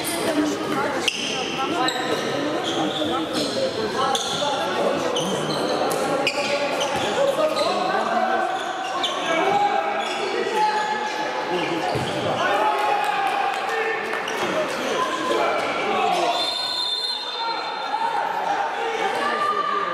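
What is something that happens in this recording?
Sports shoes squeak on a wooden court.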